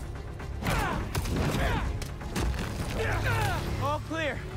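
Heavy blows land in a fight with thuds and crashes.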